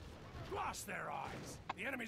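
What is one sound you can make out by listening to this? A wooden gate bursts apart with a crash.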